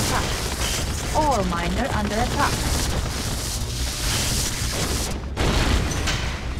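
Weapons fire and explosions rumble in a battle.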